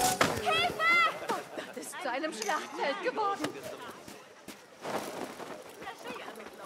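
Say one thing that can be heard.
Bodies scuffle and thud on dirt ground.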